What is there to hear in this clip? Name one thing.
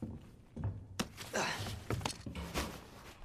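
Broken glass crunches and scrapes as someone climbs through a window frame.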